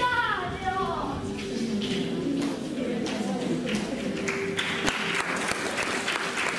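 A boy speaks through a microphone and loudspeakers in an echoing hall.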